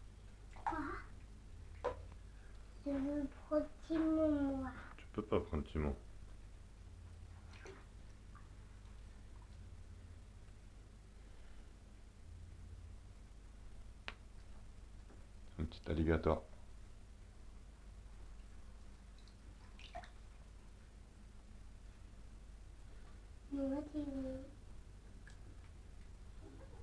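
Water sloshes and splashes.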